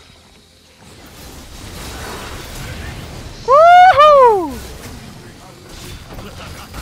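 Magic spell effects whoosh and crackle during a fight.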